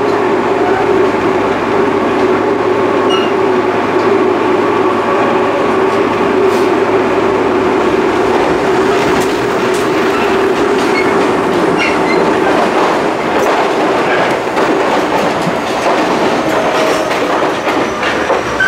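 An electric commuter train runs along the track, heard from inside a carriage.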